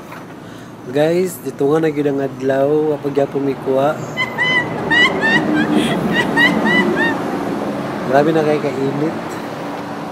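A young man talks close by with animation, outdoors.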